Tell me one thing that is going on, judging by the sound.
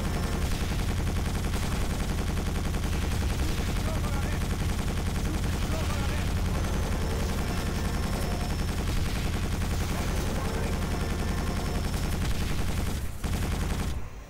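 A vehicle engine roars steadily as it speeds along.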